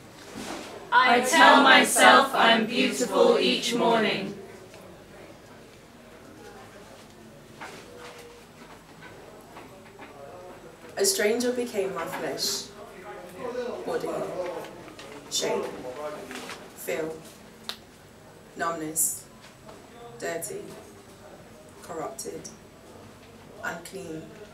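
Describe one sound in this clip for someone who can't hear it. A woman performs expressively, her voice amplified through a microphone.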